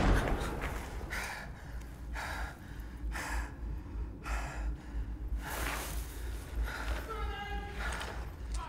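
A man breathes heavily and gasps close by.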